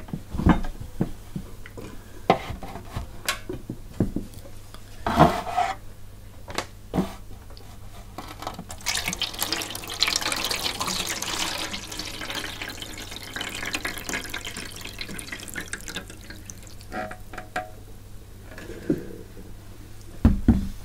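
A metal tray clatters and knocks against a hard surface.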